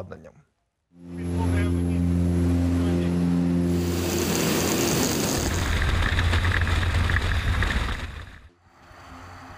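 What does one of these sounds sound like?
Aircraft engines drone loudly and steadily.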